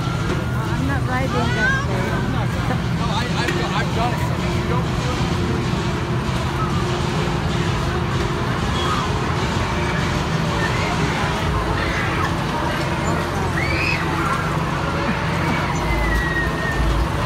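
Riders scream faintly from a spinning ride.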